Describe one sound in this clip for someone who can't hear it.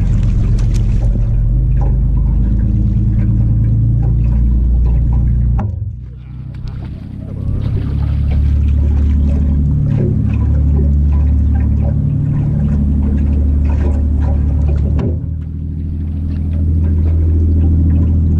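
A boat motor rumbles steadily.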